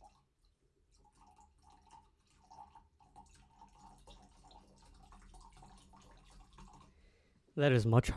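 Liquid pours into a glass with a gurgle.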